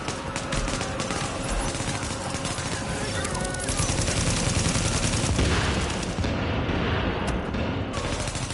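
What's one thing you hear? An automatic rifle fires in rapid bursts during a video game firefight.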